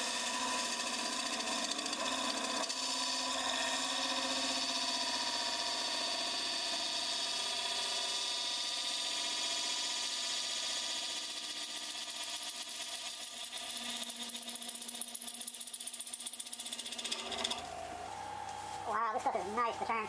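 A lathe spins and hums steadily.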